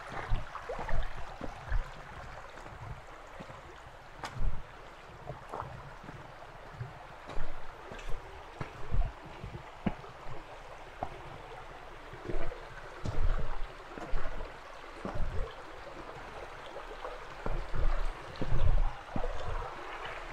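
Footsteps crunch on a rocky dirt path.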